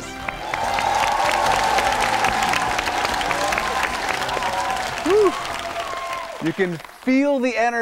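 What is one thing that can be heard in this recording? A crowd of children claps.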